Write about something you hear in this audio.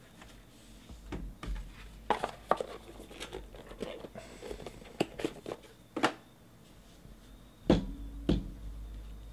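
Cards and cases tap and click against a table.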